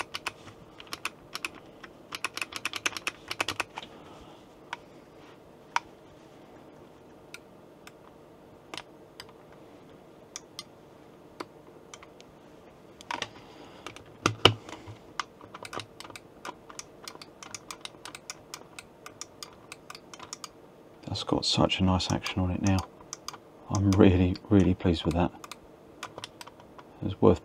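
Plastic buttons click sharply under a finger.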